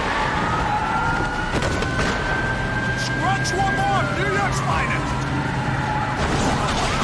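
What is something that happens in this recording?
A police siren wails close by, rising and falling.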